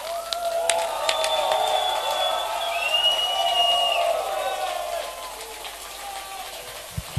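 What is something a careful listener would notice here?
A crowd cheers and whistles loudly.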